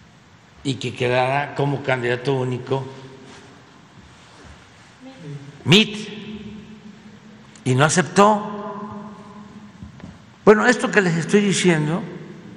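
An elderly man speaks slowly and firmly into a microphone, with long pauses.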